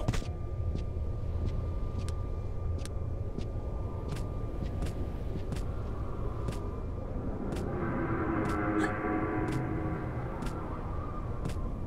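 Hands grip and shuffle along a metal grating while climbing.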